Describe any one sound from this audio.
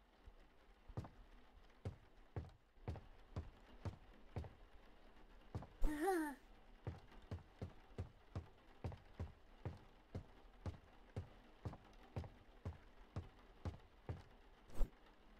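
Footsteps thud steadily on a hard floor.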